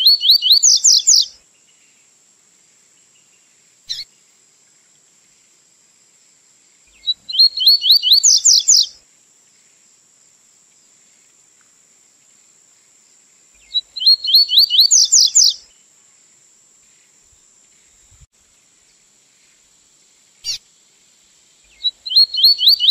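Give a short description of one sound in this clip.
A small songbird sings loud, fast trilling phrases with long pauses between them.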